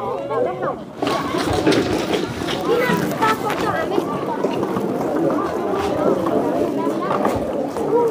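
Children chatter and shuffle about.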